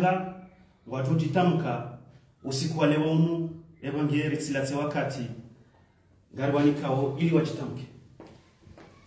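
A man speaks calmly and clearly into a nearby microphone, pausing between phrases.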